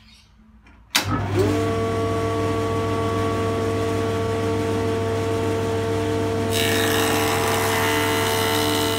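A jointer motor starts up and hums steadily.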